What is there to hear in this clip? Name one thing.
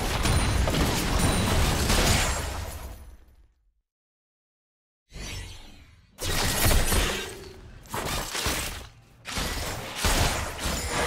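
Game spells and weapons clash and crackle in a fight.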